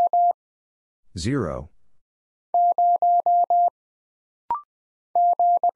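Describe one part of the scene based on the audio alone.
Morse code beeps in quick dots and dashes.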